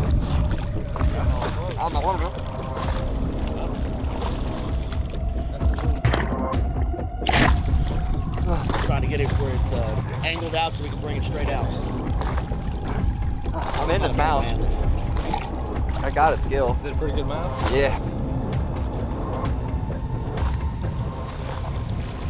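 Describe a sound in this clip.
Water splashes and sloshes around swimmers.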